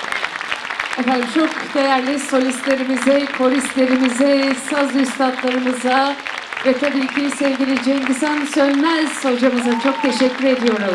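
A man sings loudly through a microphone in a large hall.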